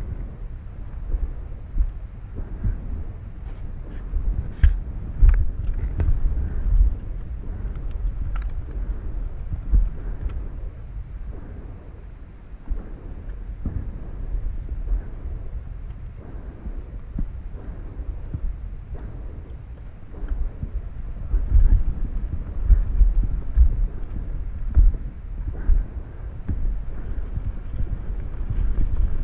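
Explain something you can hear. Stones crunch and knock under the tyres.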